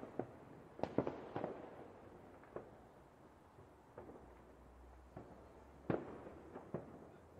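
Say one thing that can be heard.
Fireworks burst with loud booms and crackles in the distance.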